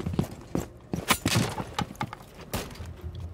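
Gear rattles and scrapes as someone climbs through a window.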